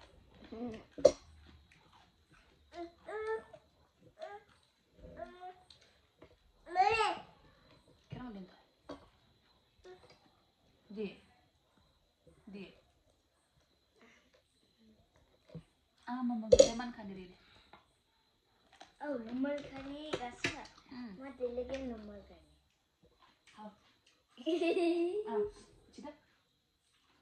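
A young boy talks and giggles close by.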